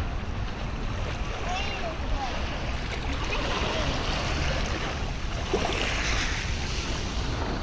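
Small waves lap and wash onto a shore.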